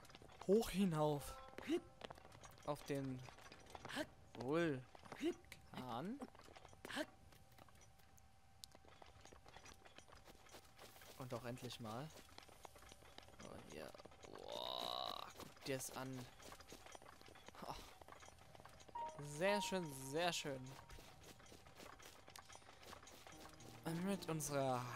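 Footsteps patter quickly over grass and rock.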